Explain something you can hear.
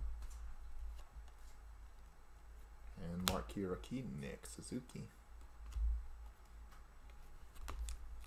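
Trading cards slide and shuffle against each other in hands.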